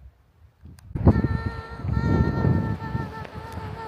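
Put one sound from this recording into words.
A young woman exclaims loudly and cheerfully close by.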